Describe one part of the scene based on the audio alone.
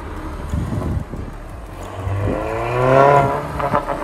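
A van's engine hums as it drives slowly past.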